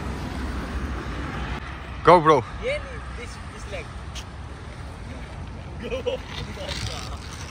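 Skateboard wheels roll and rumble over concrete.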